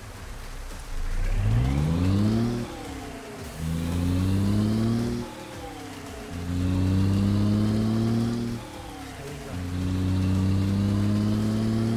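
A heavy truck engine revs up through the gears, rising in pitch, dropping at each shift.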